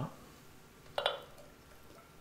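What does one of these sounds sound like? A glass jar clinks against a glass bottle.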